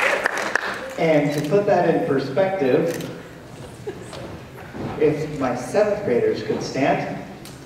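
A young woman speaks calmly over a microphone in a large echoing hall.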